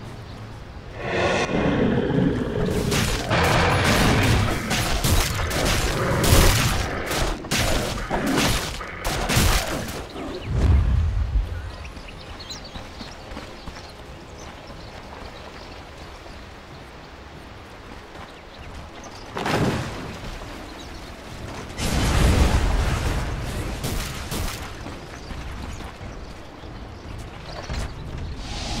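Spell blasts and weapon clashes crash in a loud fight.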